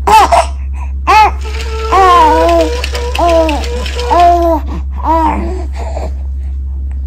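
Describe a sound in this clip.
A baby coos and squeals up close.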